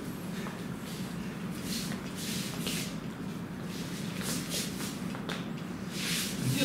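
Feet shuffle and scuff on a hard floor.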